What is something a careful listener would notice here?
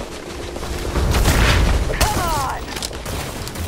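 A creature screeches loudly nearby.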